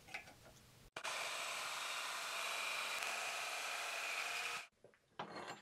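A band saw cuts through metal with a steady whine.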